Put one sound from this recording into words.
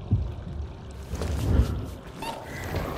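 A sparkling magical blast crackles and whooshes.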